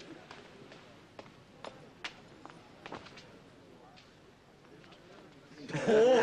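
Footsteps shuffle softly on a stone floor.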